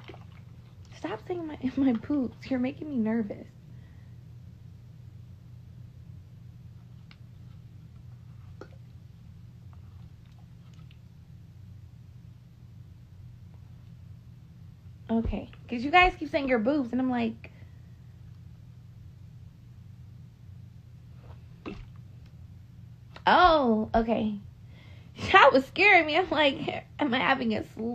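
A young woman talks casually and close by, in short bursts with pauses.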